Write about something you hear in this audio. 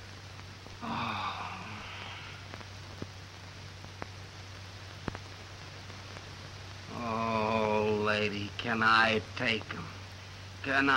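A woman speaks softly and tenderly, close by.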